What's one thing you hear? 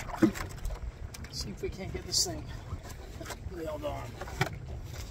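Water laps gently against a boat hull.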